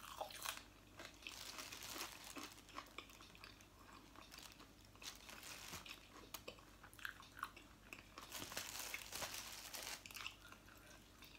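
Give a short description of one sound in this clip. Crisp shells crackle as hands pull food apart.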